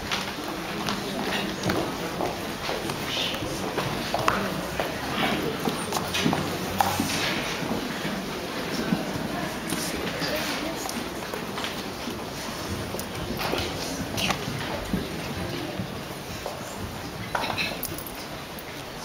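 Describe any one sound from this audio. Young children chatter and murmur close by.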